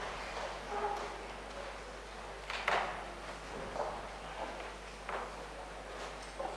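A crowd murmurs quietly in a large, echoing room.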